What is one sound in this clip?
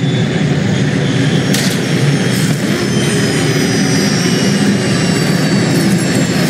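A hovering spacecraft's engines hum low and steady.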